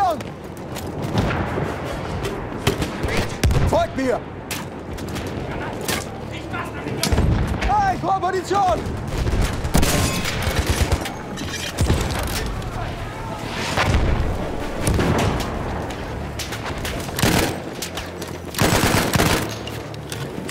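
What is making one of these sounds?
Explosions rumble nearby.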